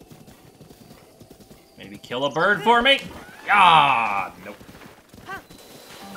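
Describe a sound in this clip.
A horse gallops over grass.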